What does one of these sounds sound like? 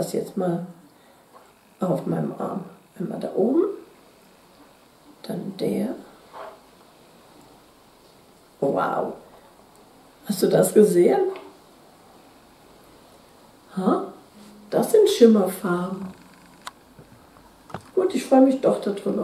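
A middle-aged woman talks calmly and close to a microphone, in short bursts with pauses.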